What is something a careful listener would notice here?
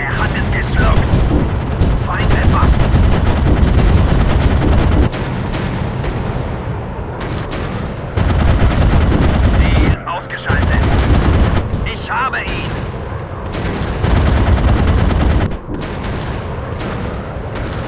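Flak shells burst with dull booms.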